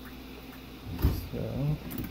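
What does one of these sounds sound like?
A dishwasher door thuds shut.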